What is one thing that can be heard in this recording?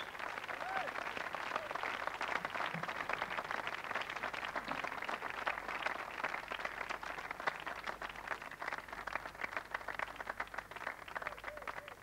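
A large crowd claps and cheers outdoors.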